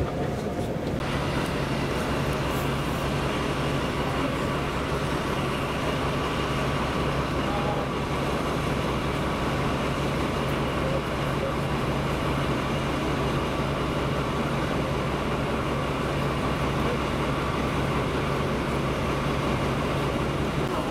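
A diesel locomotive's engine drones steadily as it creeps closer.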